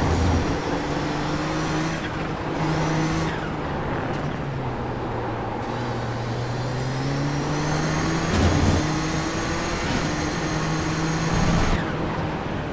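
Other racing cars roar close by.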